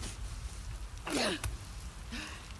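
A young woman cries out sharply.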